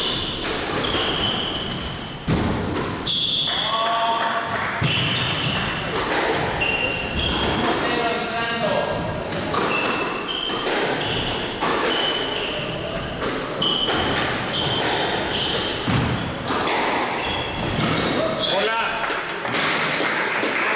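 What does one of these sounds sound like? A squash ball smacks against the walls with sharp echoing bangs in a hard-walled court.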